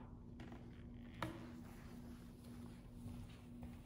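A chair knocks as a person stands up.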